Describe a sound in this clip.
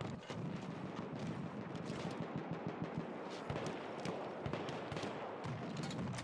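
Footsteps run on gravel.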